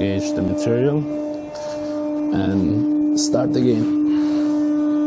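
A man speaks to the listener nearby.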